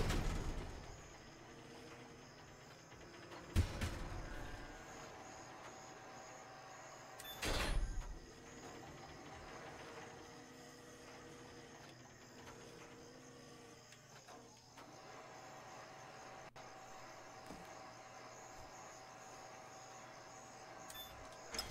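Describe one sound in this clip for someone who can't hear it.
A crane motor hums steadily.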